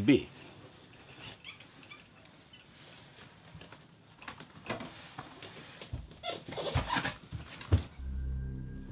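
A man scrapes and thumps while climbing in through a window.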